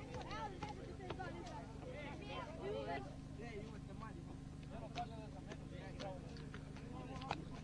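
A football is kicked on grass with dull thumps.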